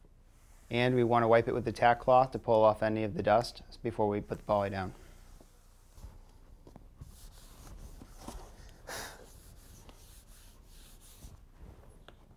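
A sponge scrubs across a wooden floor.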